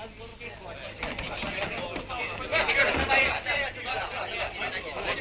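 A group of men shout and talk excitedly over one another.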